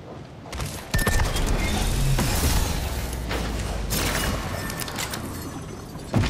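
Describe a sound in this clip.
Heavy sliding doors rumble open.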